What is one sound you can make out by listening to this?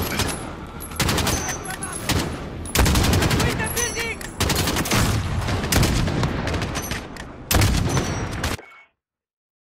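Loud rifle shots crack one after another, each followed by a long rumbling echo.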